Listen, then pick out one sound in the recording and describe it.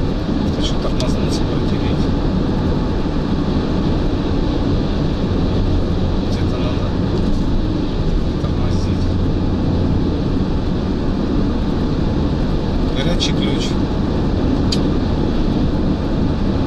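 Wind rushes loudly past an open car at speed.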